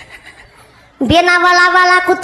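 A young woman sings a long, held note through a loudspeaker.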